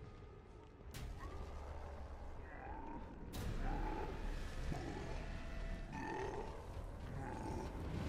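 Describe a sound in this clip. Monsters groan and snarl close by.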